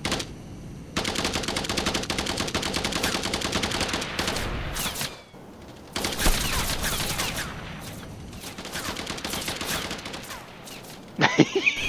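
A jet thruster roars in rapid bursts.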